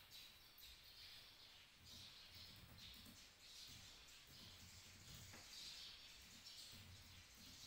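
Fingers tap on a laptop keyboard.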